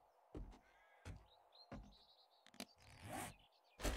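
A game inventory menu opens with a short click.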